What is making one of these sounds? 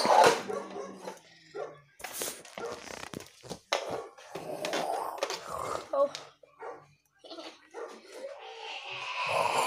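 Plastic toys clatter and knock on a wooden floor.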